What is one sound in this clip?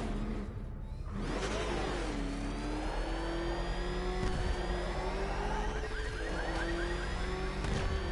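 An armoured car's engine roars and whines steadily, rising and falling in pitch as it speeds along.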